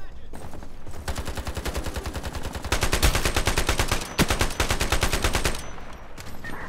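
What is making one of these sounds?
A rifle fires rapid bursts of shots, loud and close.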